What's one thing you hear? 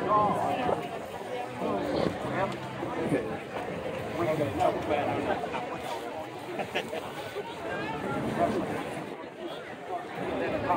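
A crowd of men and women talk and chatter close by outdoors.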